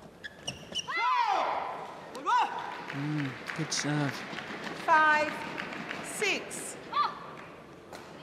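Shoes squeak sharply on an indoor court floor.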